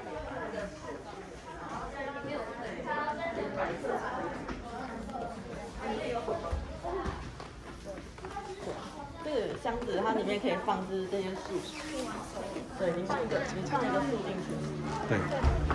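Several children and women chatter nearby in a room.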